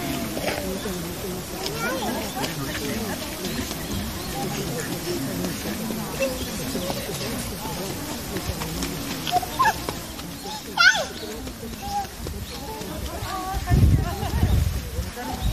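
Many people chatter and call out in the distance outdoors.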